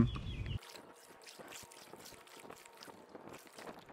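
A paddle dips and splashes softly in water.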